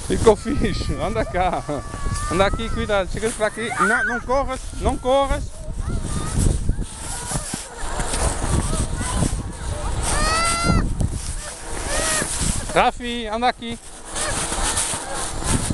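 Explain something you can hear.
A sled scrapes and hisses over packed snow.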